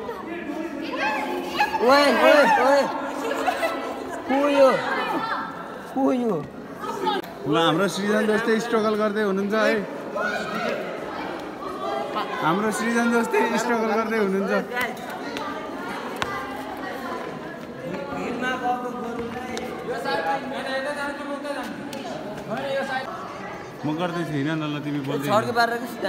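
Several young men talk and shout loudly close by.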